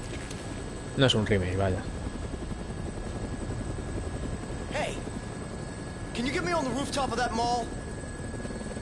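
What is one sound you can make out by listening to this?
A man speaks with animation over a headset microphone.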